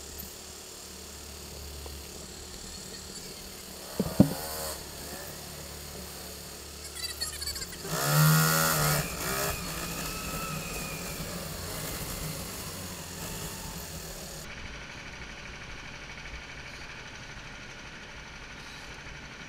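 A go-kart engine hums steadily in a large echoing hall.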